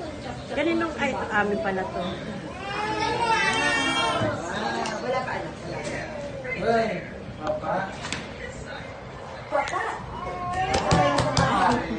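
Several adults chat and laugh nearby.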